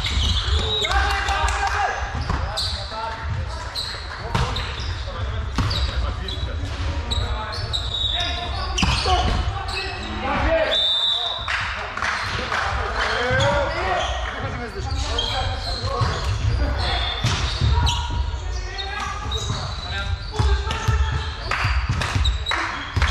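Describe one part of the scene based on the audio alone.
Several men call out and talk across a large echoing hall.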